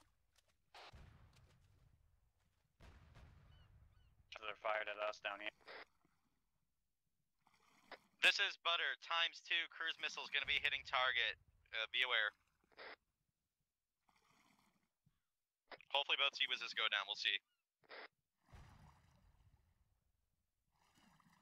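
Water splashes and sloshes with swimming strokes.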